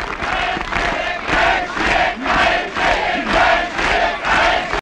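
A crowd claps rhythmically.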